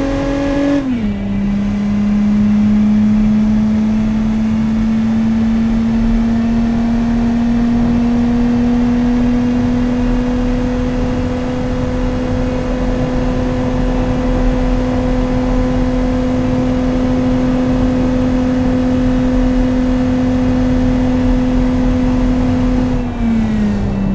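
A car engine drops sharply in pitch as it shifts up a gear.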